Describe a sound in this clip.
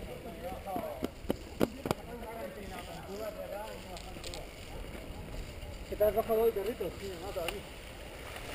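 A bicycle rattles and clunks over bumps.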